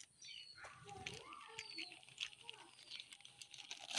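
Flour pours softly from a bag onto a heap.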